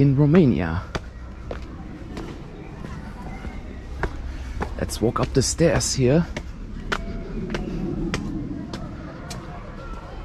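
Footsteps climb stone steps outdoors.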